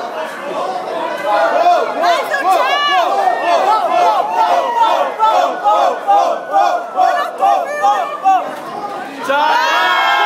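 A large crowd chants in rhythm, close by.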